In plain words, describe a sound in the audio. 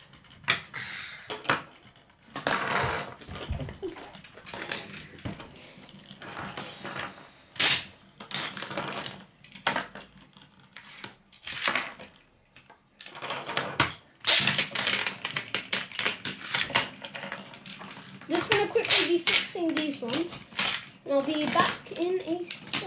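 Spinning tops clash and clack against each other.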